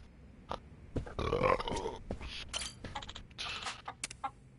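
A chicken clucks.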